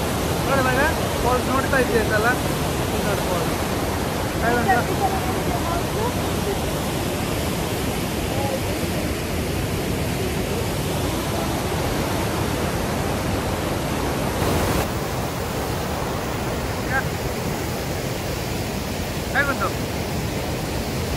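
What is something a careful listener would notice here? A river rushes loudly over rapids nearby.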